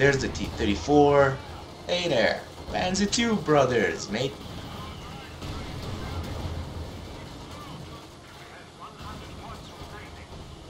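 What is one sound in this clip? Guns fire and shells explode in a battle.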